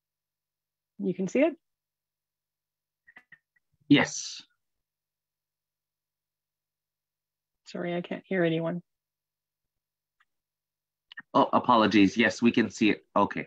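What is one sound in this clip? A woman speaks calmly over an online call, in short phrases with pauses.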